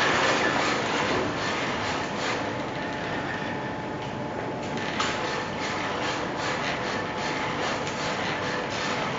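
Metal robot feet thud on the floor with each step.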